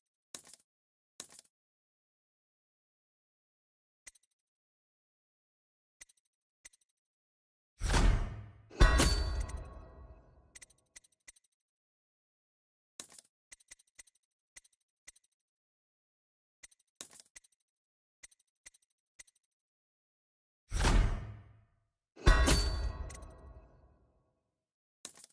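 Short soft clicks tick as menu selections change.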